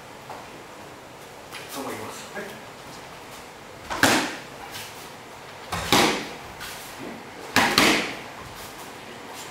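Bare feet shuffle and stamp on a mat.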